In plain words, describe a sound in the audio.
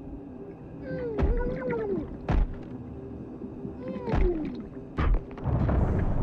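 A window's glass is struck with hard, sharp knocks.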